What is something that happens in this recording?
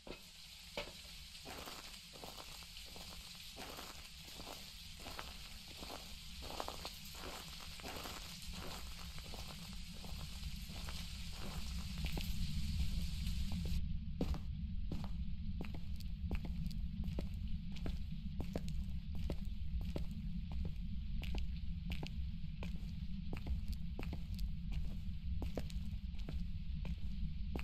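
Footsteps walk at a steady pace on hard ground.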